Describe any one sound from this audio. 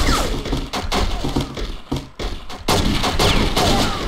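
A pistol fires shots in quick succession.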